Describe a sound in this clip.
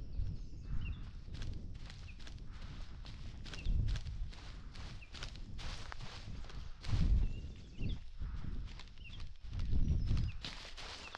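Footsteps crunch steadily over dry leaves and twigs.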